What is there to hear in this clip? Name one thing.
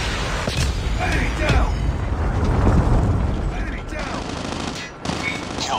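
Gunshots crack out in short bursts.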